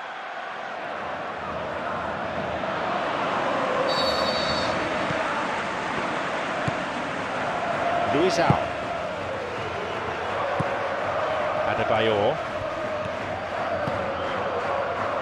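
A large stadium crowd cheers and murmurs steadily.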